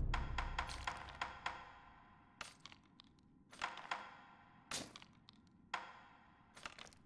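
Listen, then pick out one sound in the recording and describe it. Short chiming menu clicks sound as a selection moves from item to item.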